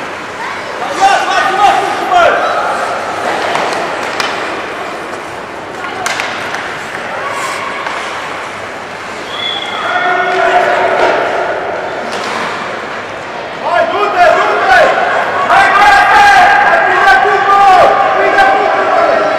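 Young children shout across the ice.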